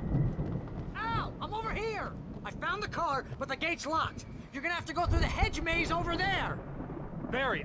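A man calls out urgently.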